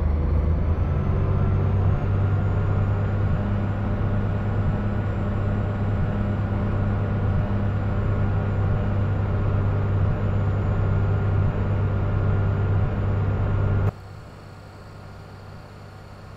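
A truck's diesel engine drones steadily from inside the cab, then drops away to a quieter hum.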